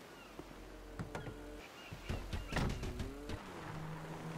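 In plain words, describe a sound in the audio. A car door opens and slams shut.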